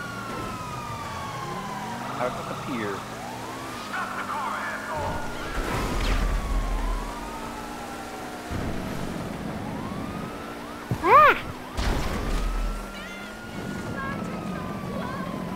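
A car engine roars and revs as the car speeds along.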